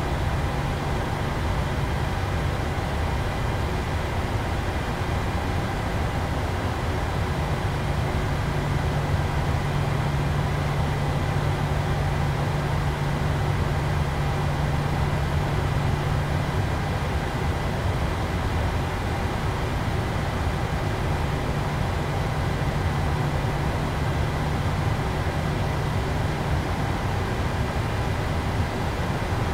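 Jet engines hum steadily while an airliner taxis.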